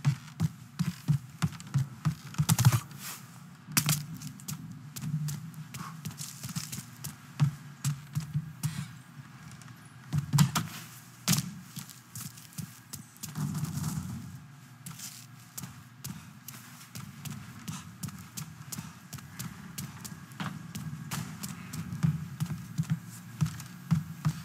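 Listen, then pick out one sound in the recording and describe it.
Footsteps thud on wooden floors at a quick pace.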